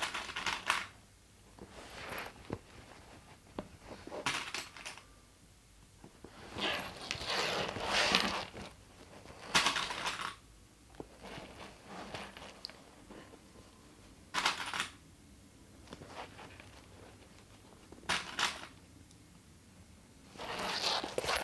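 Stiff fabric rustles and crinkles as it is handled.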